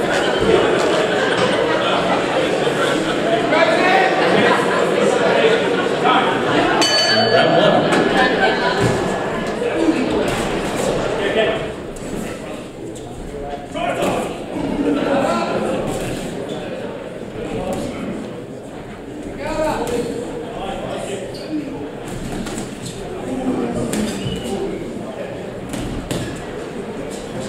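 A crowd in a large hall cheers and shouts loudly, then quietens to a murmur.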